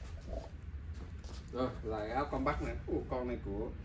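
A fabric jacket rustles as it is unfolded and handled.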